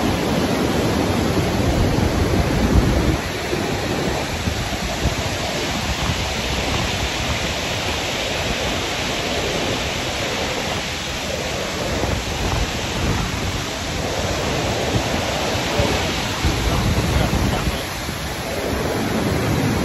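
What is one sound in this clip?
Rushing water roars nearby.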